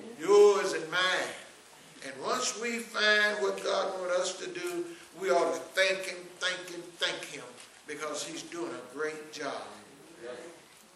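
An elderly man preaches with fervour through a microphone in an echoing hall.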